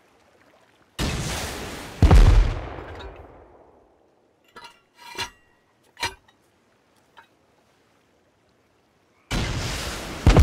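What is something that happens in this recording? A rocket launcher fires with a loud whoosh.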